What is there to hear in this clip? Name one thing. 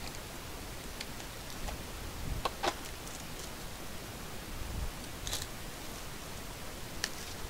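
Plastic wrappers crinkle and rustle as packs are handled.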